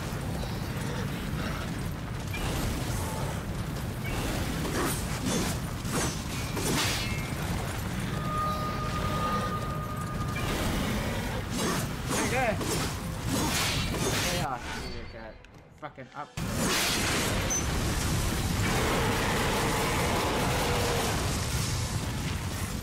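Explosions and crashes boom again and again.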